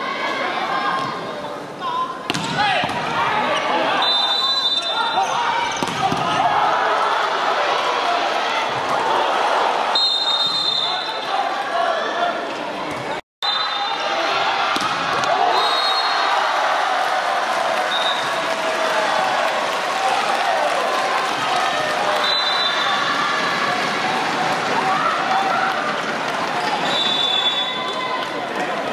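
A large crowd in an echoing arena cheers and chants steadily.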